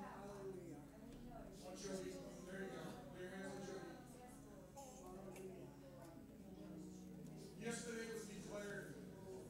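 A band plays a song through loudspeakers in an echoing room.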